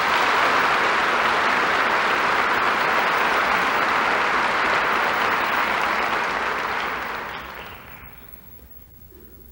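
A large audience applauds loudly in a big hall, then the applause fades away.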